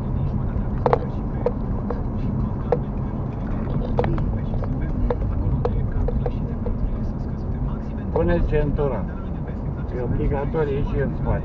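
A car engine hums steadily with road rumble from the tyres.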